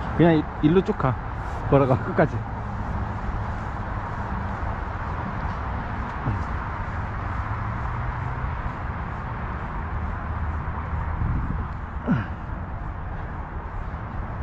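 Wind rumbles steadily across the microphone outdoors.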